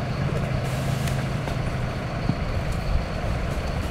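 Cardboard boxes rustle and knock as a worker handles them.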